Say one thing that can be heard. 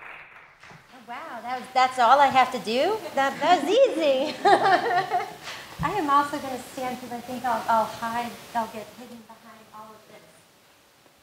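A young woman speaks with animation and laughs, heard through a microphone.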